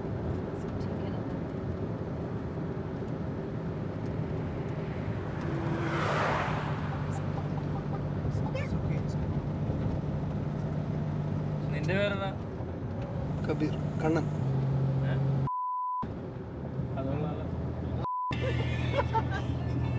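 A car engine hums steadily inside a moving vehicle.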